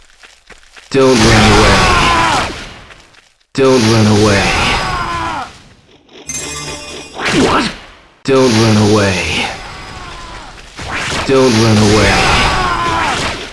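Crackling electric blasts burst loudly, again and again.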